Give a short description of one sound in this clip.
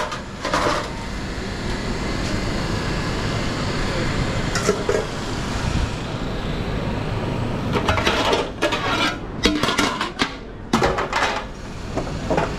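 Metal trays clatter and scrape against each other.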